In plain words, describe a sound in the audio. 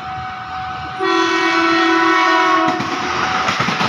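A train horn blares briefly.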